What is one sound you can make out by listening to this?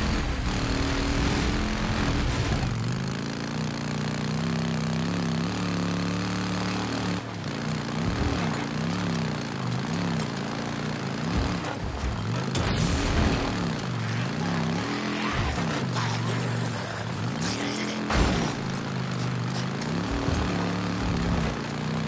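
A motorcycle engine revs up and down as it rides.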